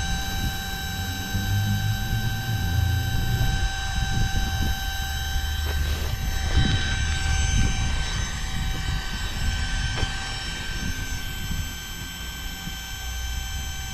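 Air hisses softly out of a valve.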